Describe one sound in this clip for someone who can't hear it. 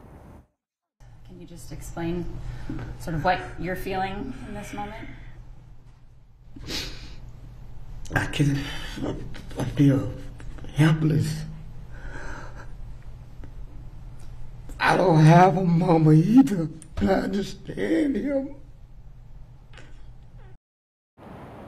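An elderly man speaks slowly and emotionally into a microphone.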